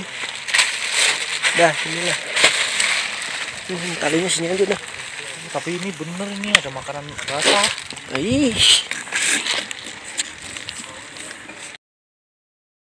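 Leaves and branches rustle as someone moves through brush.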